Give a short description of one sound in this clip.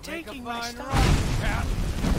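A fire spell bursts with a loud whoosh.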